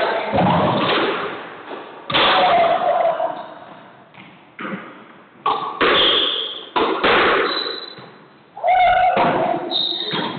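A squash ball smacks hard against the walls, echoing around a hard-walled court.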